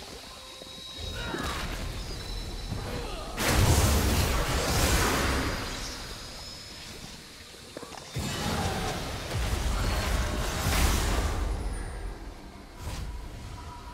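Magic blasts crash and whoosh during a video game battle.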